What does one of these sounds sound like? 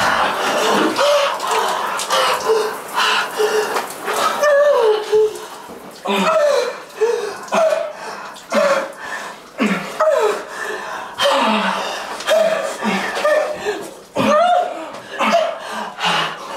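A young woman moans loudly and repeatedly, close by.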